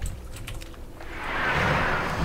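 A magic spell whooshes and hums.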